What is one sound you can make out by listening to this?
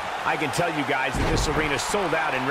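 A body slams onto a wrestling ring mat with a thud.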